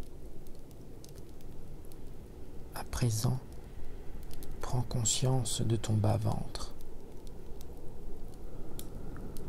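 A wood fire crackles and pops steadily.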